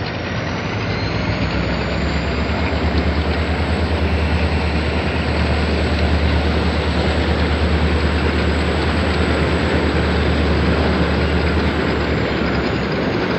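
A boat's outboard motor drones steadily nearby, then drops away.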